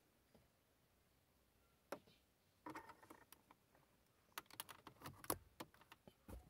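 A plug clicks and scrapes into a socket.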